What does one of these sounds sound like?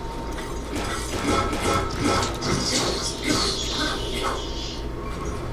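A sword strikes a creature with a sharp metallic hit.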